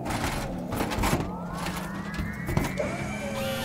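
Heavy metal parts clank against a metal floor.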